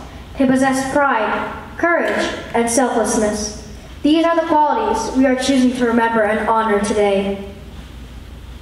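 A young girl speaks with feeling through a loudspeaker in a large echoing hall.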